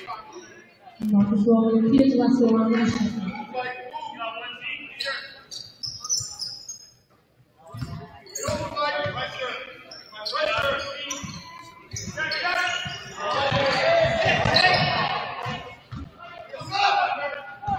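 Spectators and players shout and chatter in an echoing gym.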